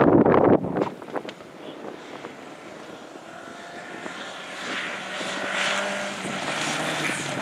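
Tyres crunch and spray gravel on a dirt track.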